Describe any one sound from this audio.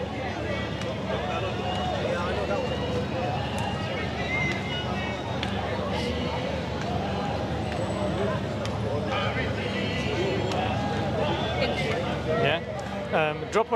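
A crowd of people chatters nearby in an echoing open space.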